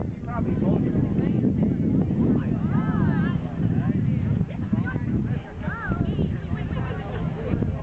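A crowd chatters in the distance outdoors.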